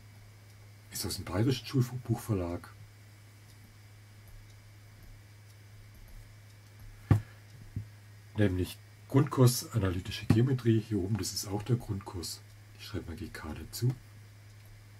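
An older man speaks calmly and closely into a microphone, in short bursts with pauses.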